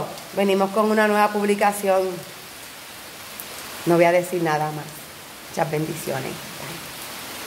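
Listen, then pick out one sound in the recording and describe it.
A middle-aged woman speaks warmly and close up.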